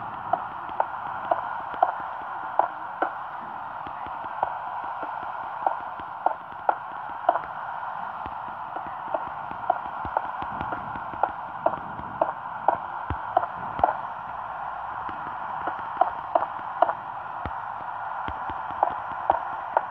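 Blocks are placed with short soft thuds.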